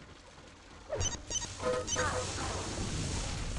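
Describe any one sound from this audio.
An electric beam weapon fires with a crackling buzz.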